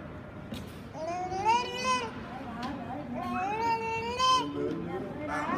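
A toddler makes high, sing-song squealing sounds close by.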